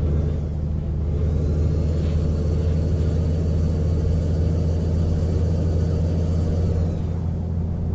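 A truck engine whines higher as it speeds up, then eases off.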